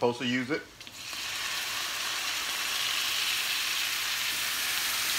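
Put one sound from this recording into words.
Food sizzles loudly in a hot frying pan.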